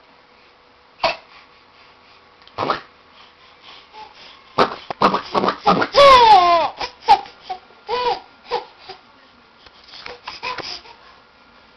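A baby squeals and laughs loudly, close by.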